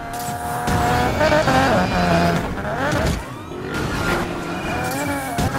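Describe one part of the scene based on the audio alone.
A car engine roars and revs, its pitch rising and falling.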